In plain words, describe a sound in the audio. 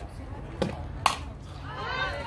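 A softball smacks sharply into a catcher's mitt.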